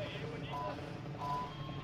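Helicopter rotors thump nearby.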